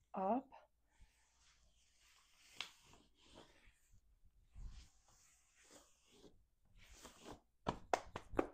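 Hands rub and brush over cloth.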